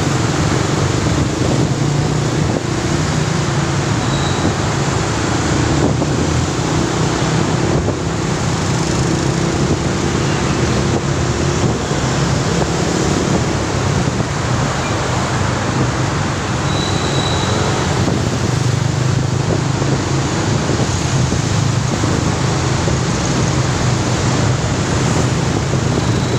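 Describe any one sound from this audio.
Wind rushes past loudly outdoors.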